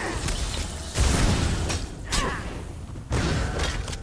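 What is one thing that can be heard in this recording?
Magic bursts whoosh and crackle.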